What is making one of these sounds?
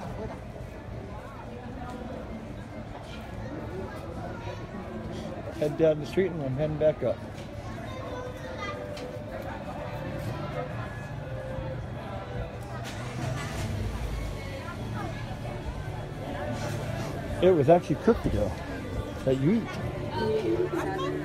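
A crowd of diners chatters outdoors.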